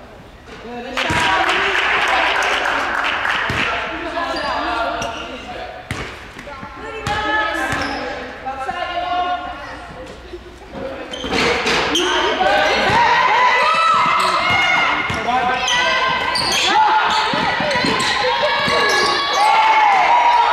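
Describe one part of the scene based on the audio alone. Spectators cheer and call out in an echoing gym.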